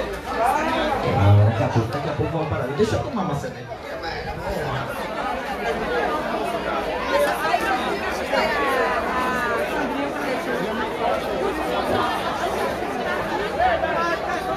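A large crowd of people chatters and shouts loudly outdoors.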